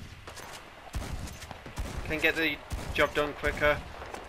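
A rifle fires loud shots outdoors.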